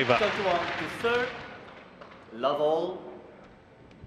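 A man calls out clearly through a microphone in a large hall.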